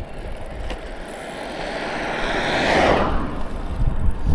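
A car approaches and whooshes past close by.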